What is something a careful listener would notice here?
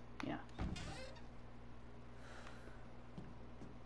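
Wooden cabinet doors creak open.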